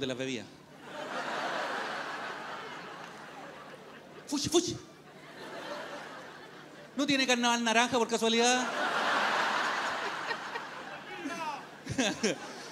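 A large audience laughs and cheers.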